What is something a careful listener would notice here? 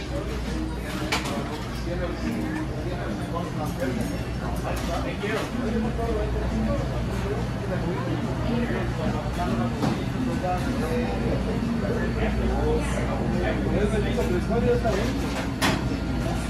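Refrigerated display counters hum steadily.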